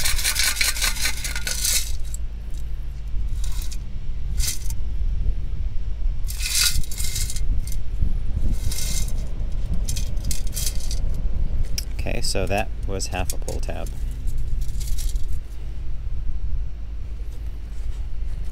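Shells and pebbles rattle in a metal sand scoop.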